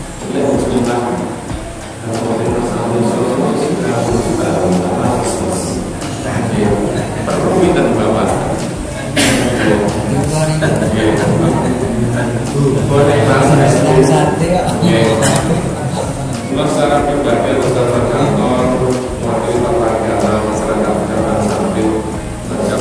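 A middle-aged man speaks steadily through a microphone in a room with some echo.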